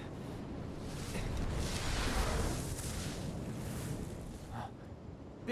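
A deep rushing whoosh swells and then fades.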